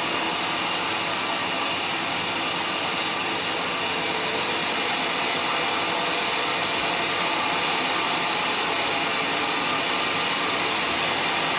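A large circular saw whines steadily as it cuts through wood.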